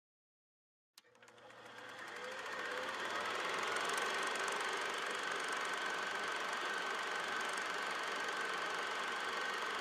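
A film projector whirs and clatters steadily.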